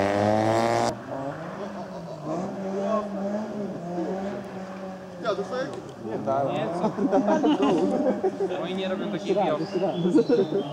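A rally car engine hums in the distance.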